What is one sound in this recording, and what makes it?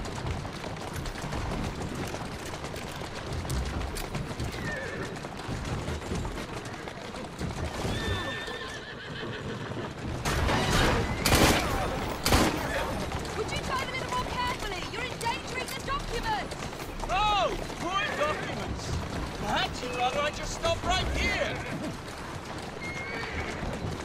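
Carriage wheels rattle over cobblestones.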